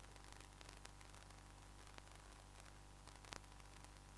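A bat strikes a cricket ball with a sharp knock.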